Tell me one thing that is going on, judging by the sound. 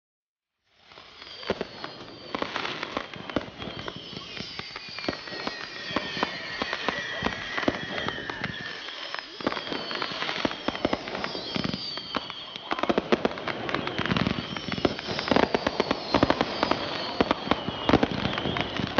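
Firework rockets whistle as they rise.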